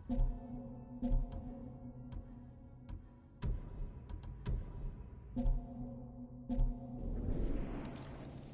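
Soft chimes ring out with each menu selection.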